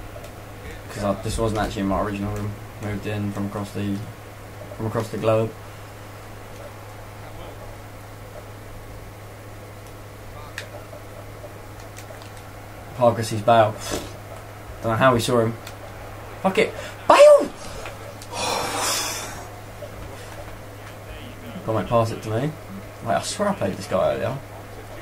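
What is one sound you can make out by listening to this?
A young man talks casually into a close microphone, in bursts.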